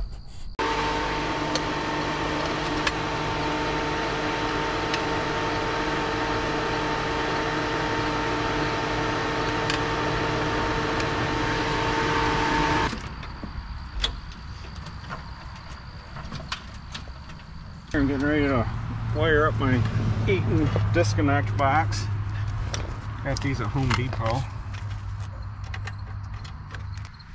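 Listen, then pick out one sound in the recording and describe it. Metal clicks and clatters as a man handles an electrical box.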